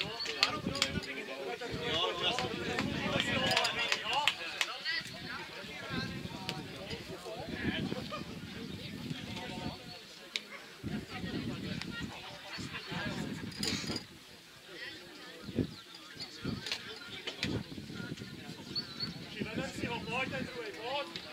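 Men call out to one another across an open outdoor football pitch.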